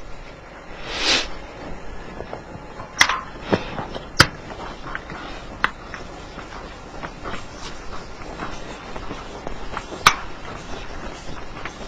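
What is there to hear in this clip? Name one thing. An eraser rubs across a whiteboard.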